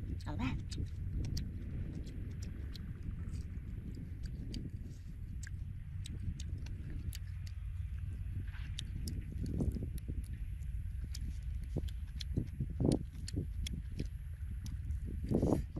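A young man chews and crunches food up close.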